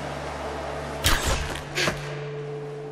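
A bowstring snaps as an arrow is shot.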